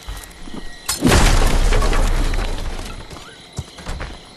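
A wooden door bursts open with a loud crash.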